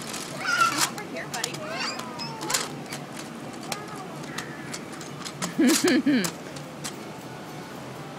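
Plastic toy gears click and rattle under a toddler's hands.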